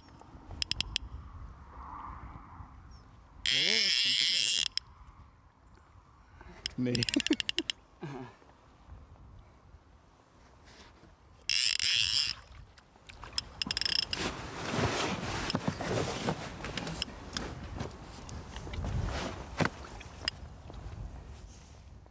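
Water laps gently against a boat.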